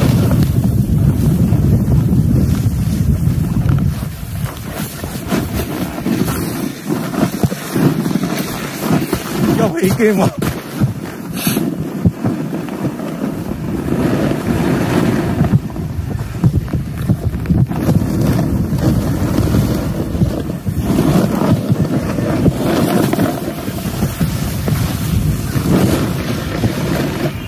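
Snowboards scrape and hiss over snow.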